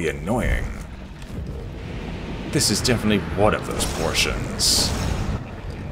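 A sword swings and strikes with sharp whooshes.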